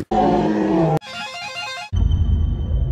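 An electric guitar plays.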